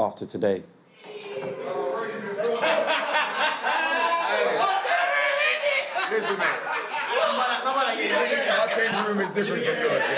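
Several young men talk and laugh loudly together in an echoing room.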